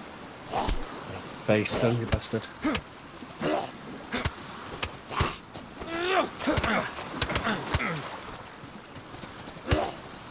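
Fists thud in quick punches.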